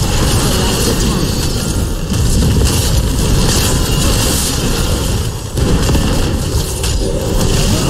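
Game battle effects of magic blasts and clashing attacks sound constantly.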